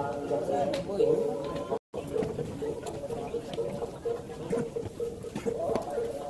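Footsteps climb stone steps close by.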